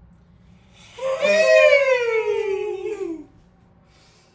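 Another young man yells out in a long, falling cry close by.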